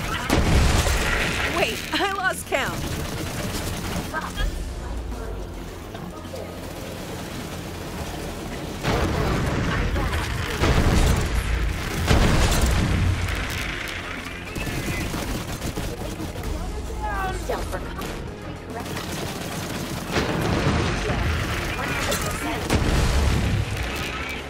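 Gunfire blasts rapidly and loudly.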